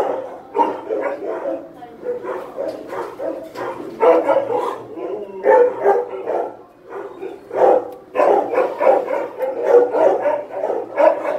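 A dog whines and grumbles up close.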